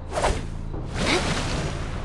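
A weapon swings through the air with a whoosh.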